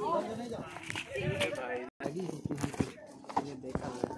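Shoes scuff on a paved path.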